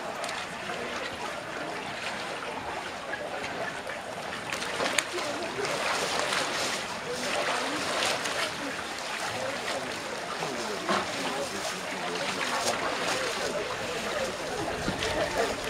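Water splashes and sloshes as a woman wades into a cold pool.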